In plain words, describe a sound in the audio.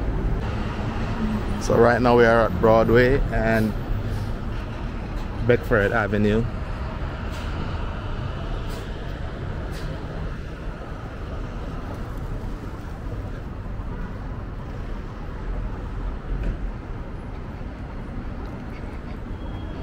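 Traffic hums steadily along a city street outdoors.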